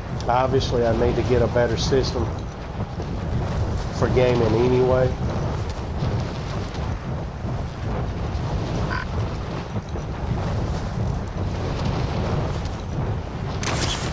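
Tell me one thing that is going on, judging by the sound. Wind rushes steadily past during a freefall.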